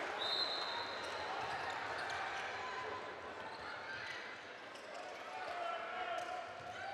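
A crowd cheers and chants in a large echoing arena.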